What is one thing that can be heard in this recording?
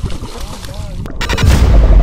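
A fish splashes in shallow water.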